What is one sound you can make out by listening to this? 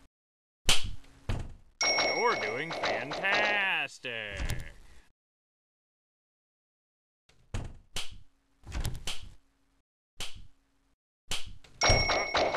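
A door slams shut with a loud bang.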